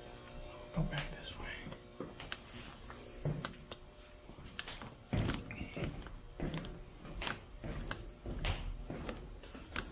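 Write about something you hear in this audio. Footsteps thud slowly along a hard floor in an echoing corridor.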